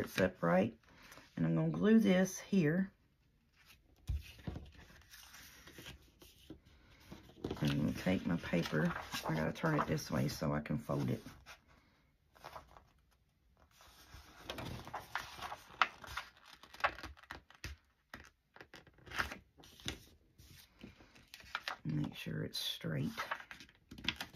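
Paper rustles and crinkles as it is handled and folded.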